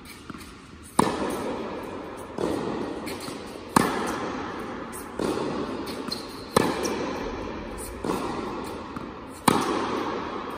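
A tennis racket strikes a ball again and again, ringing through a large echoing hall.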